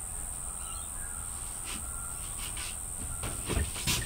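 A cupboard door bumps shut.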